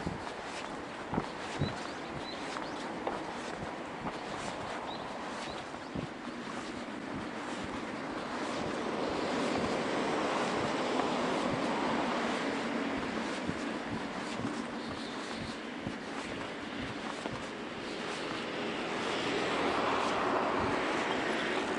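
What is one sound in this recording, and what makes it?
Bicycle tyres hum on a paved path.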